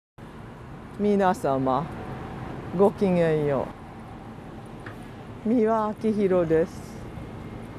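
A woman speaks cheerfully and clearly into a close microphone.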